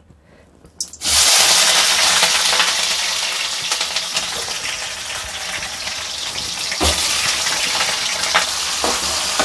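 Slices of food sizzle and crackle loudly in hot oil.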